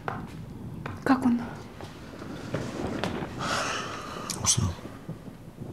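A woman speaks quietly and tensely, close by.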